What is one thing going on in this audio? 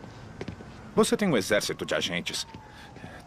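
A man speaks tensely, up close.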